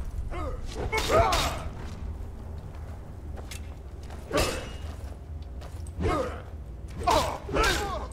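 Metal weapons clang and thud as they strike in a fight.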